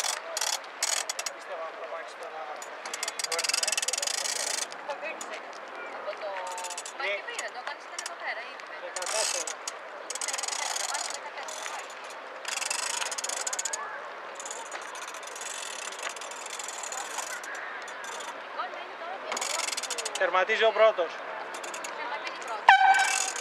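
Small waves lap gently on open water.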